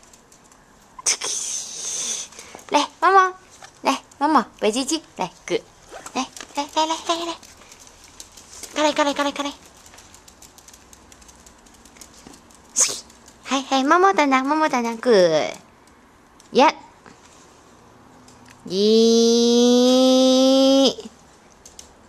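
Small dogs yap and whine excitedly nearby.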